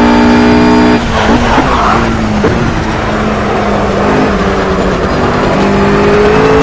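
A GT3 racing car engine drops through the gears under braking into a corner.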